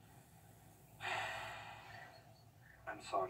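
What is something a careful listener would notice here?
A man sighs heavily.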